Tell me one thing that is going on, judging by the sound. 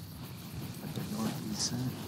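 Broad leaves rustle as someone pushes through them.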